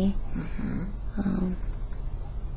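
A woman moans and groans sleepily, close by.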